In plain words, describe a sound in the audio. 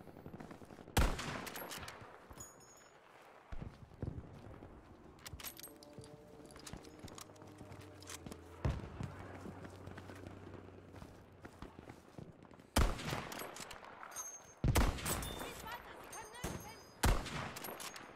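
A rifle fires loud, sharp single shots.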